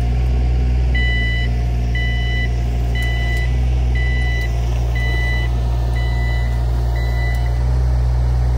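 A digger's warning alarm beeps at an even pace.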